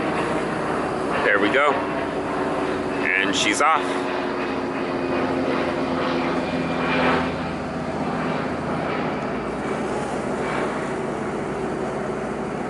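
A ship's engine hums steadily nearby.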